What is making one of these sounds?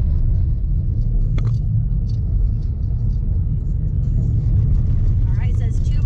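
A car rumbles steadily along a dirt road, heard from inside.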